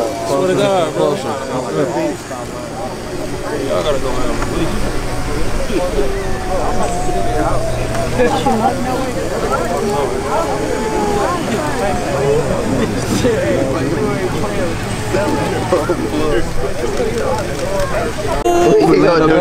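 Young men talk with each other nearby, outdoors.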